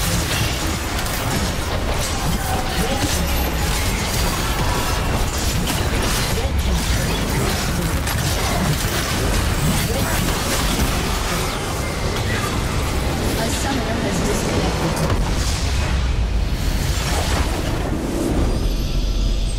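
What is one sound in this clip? Spells blast, crackle and clash in a busy fight.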